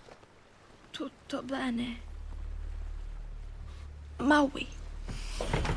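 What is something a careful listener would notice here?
A young girl speaks in a startled voice.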